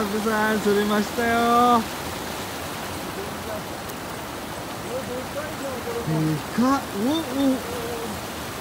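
A young man talks casually close by.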